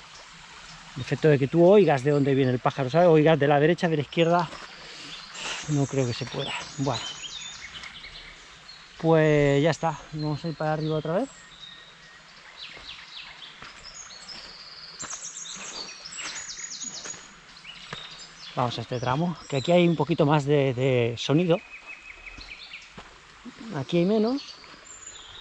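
A middle-aged man talks with animation close to a microphone.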